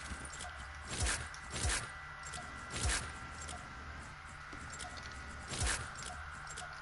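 Short game menu clicks sound as items are selected.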